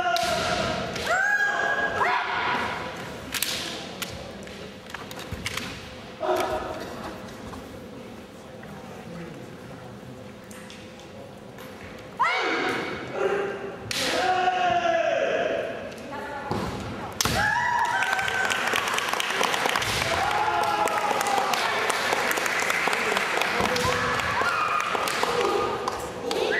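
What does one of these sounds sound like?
Kendo fighters shout loud, drawn-out cries in a large echoing hall.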